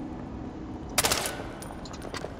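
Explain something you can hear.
A gun fires a single loud shot.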